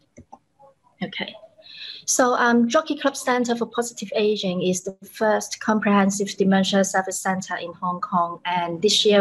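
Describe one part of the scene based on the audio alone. A woman speaks steadily through a microphone.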